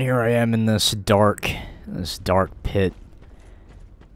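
Metal armour clanks with footsteps.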